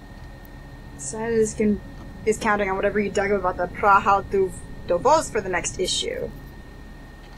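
A young woman talks with animation into a headset microphone, close by.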